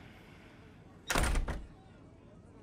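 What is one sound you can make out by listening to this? A door swings shut with a thud.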